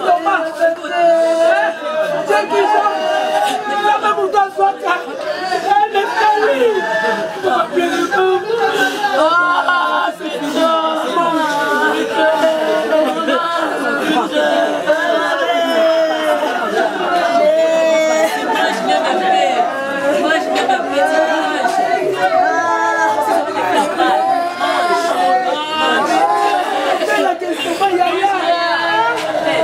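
Several women wail and cry loudly and close by.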